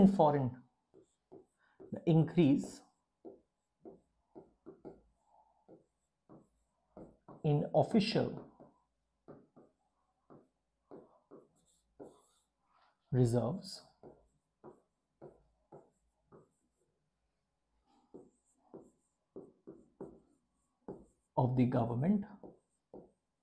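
A pen squeaks and taps on a whiteboard as a man writes.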